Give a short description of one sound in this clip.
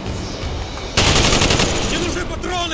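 Gunfire rattles in a rapid burst.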